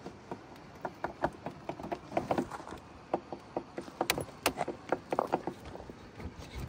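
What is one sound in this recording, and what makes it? Plastic tyres scrape and knock on rock.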